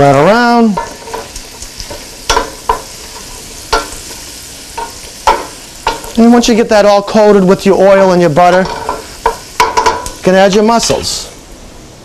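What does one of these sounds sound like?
A wooden spoon scrapes and stirs in a metal pan.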